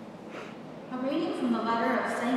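An elderly woman reads out calmly into a microphone in an echoing hall.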